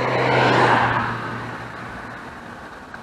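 Wind rushes past loudly and fades.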